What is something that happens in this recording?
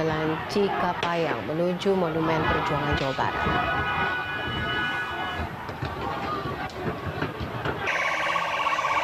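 A large crowd shouts loudly outdoors.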